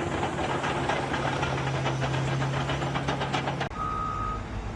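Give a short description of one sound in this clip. Metal tracks clank and grind loudly as a bulldozer moves.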